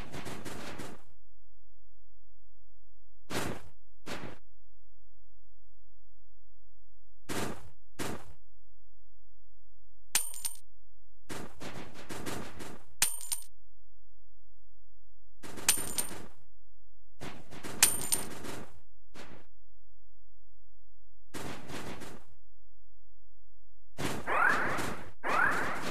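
Footsteps crunch through snow in short bursts.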